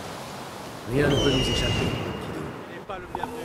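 An eagle screeches overhead.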